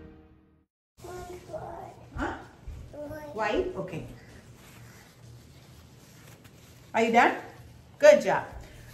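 A young girl talks close by in a high, lively voice.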